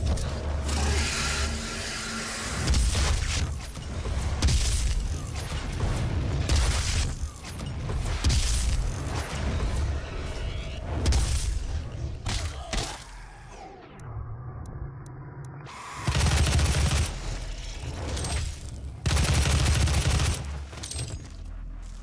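Heavy gunshots boom in rapid bursts.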